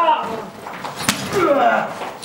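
A sharp blow lands on a man.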